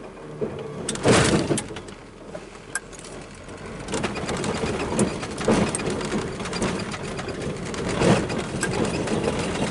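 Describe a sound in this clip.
A vehicle's body rattles and thumps over bumps.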